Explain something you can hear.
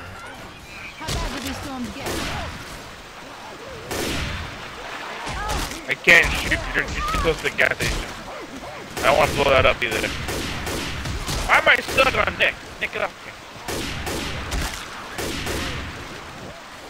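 Guns fire in quick, loud bursts.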